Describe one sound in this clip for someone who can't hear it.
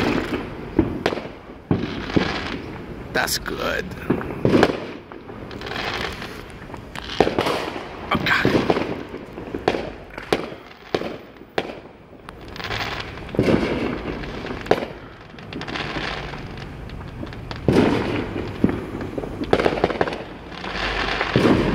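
Fireworks crackle and sizzle after bursting.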